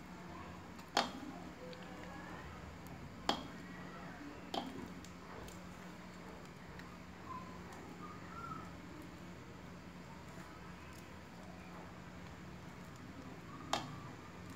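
A metal spoon clinks against the rim of a pot.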